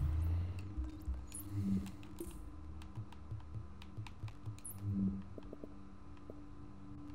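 Menu clicks and chimes sound as pages change.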